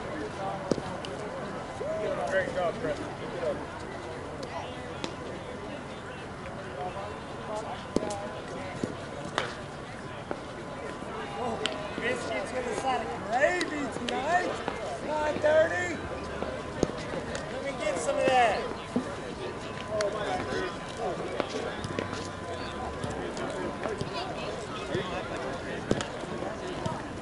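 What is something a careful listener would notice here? Men shout and call out at a distance across an open field.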